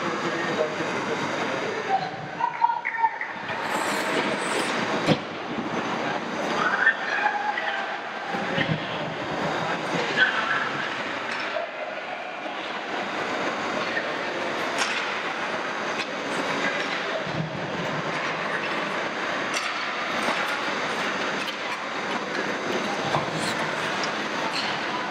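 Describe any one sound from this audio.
Ice hockey skates scrape and carve across the ice.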